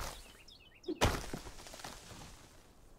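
A tree creaks and crashes to the ground.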